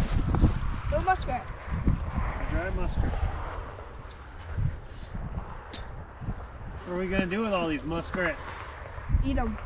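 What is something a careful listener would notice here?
A boy talks casually, close by.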